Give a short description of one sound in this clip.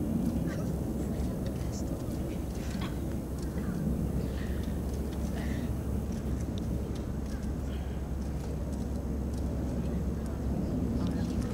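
A felt marker squeaks on a basketball.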